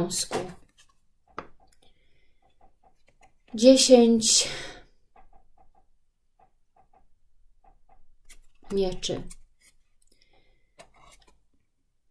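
Playing cards rustle and tap as a hand handles them.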